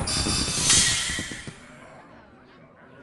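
A bright game fanfare rings out and fades.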